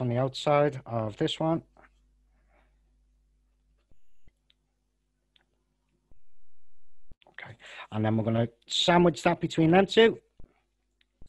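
A man talks calmly into a close headset microphone, heard as if over an online call.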